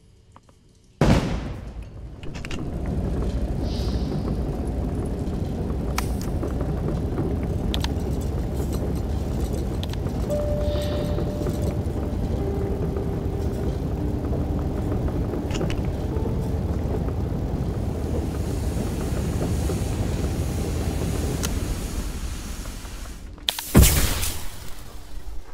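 A heavy engine roars low and steady as a craft hovers.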